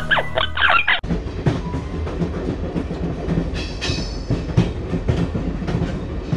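A steam locomotive chugs and rumbles along the track.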